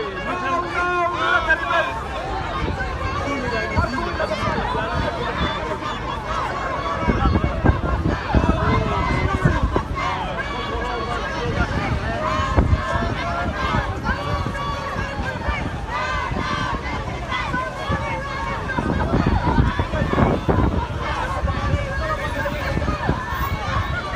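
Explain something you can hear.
A crowd of protesters chants and shouts outdoors.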